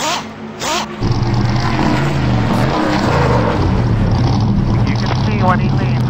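Stock car engines roar at speed in a pack.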